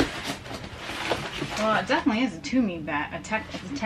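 A fabric bag rustles as it is pushed into a box.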